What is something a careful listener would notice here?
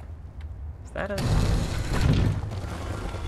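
A button clicks when pressed.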